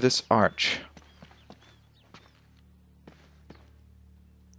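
Footsteps scuff slowly on stone.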